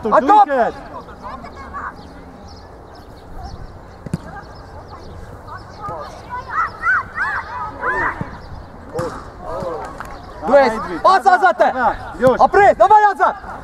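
Young girls shout and call out across an open field.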